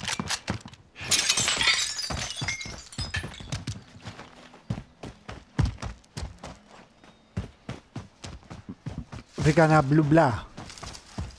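Footsteps crunch on dirt and grass outdoors.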